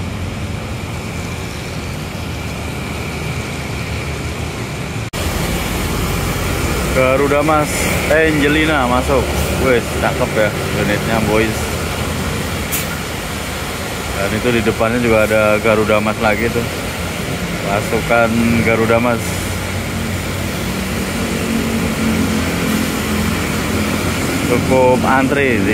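A bus engine rumbles steadily close by.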